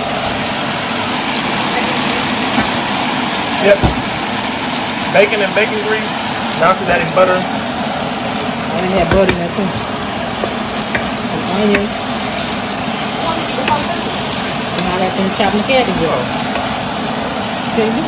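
Cabbage sizzles steadily in a hot pan.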